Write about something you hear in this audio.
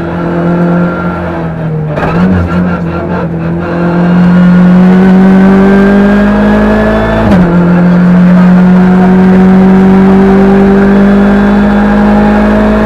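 A car engine roars loudly, rising in pitch as it accelerates and dropping briefly at a gear change.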